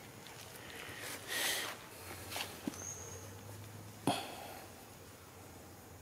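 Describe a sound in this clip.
A small monkey's feet patter and rustle through leaves.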